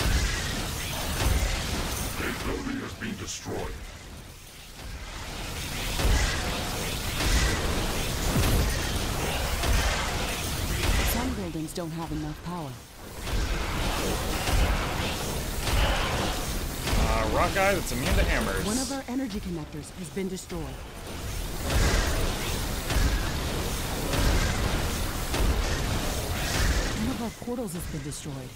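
Game explosions and weapon fire crackle and boom continuously.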